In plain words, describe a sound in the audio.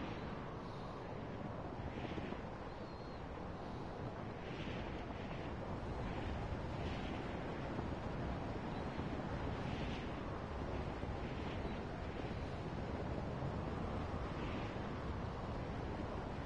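Wind rushes steadily past a gliding hang glider.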